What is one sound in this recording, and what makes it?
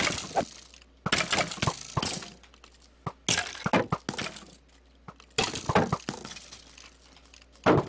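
A sword strikes a rattling skeleton with sharp blows.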